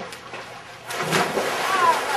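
A man jumps into a pool with a loud splash.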